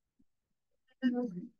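A young woman speaks quietly through an online call.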